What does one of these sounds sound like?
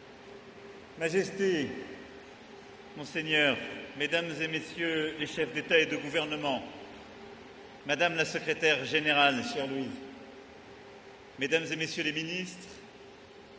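A middle-aged man speaks formally into a microphone, in a large hall with a slight echo.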